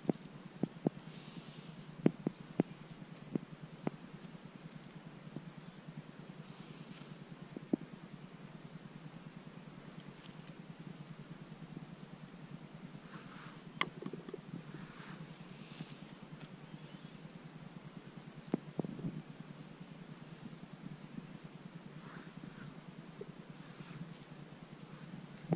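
Dry pine needles rustle under a hand.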